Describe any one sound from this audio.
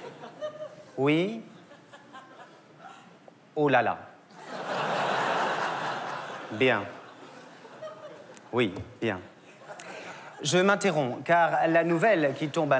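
A young man speaks in bursts with exaggerated expression, close by.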